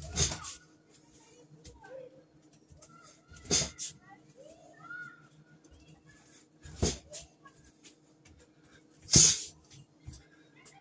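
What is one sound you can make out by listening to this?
Dishes clatter and clink against a counter.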